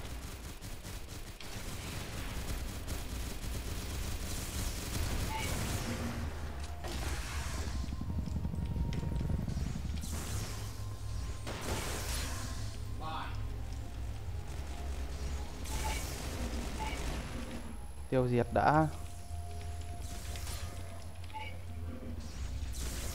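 Metal claws swipe and slash through the air.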